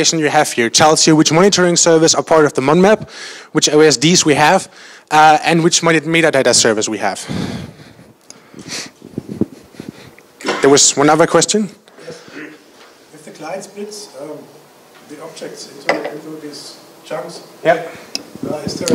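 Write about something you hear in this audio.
A man speaks steadily into a microphone, heard through loudspeakers in a large room.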